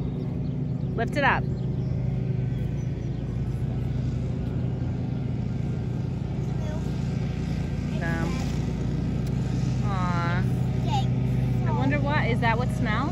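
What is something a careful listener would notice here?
Young girls talk and exclaim nearby outdoors.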